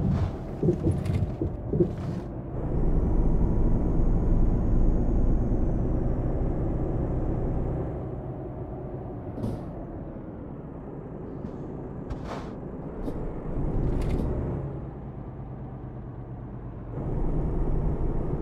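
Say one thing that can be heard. A truck engine rumbles steadily, rising and falling as it drives.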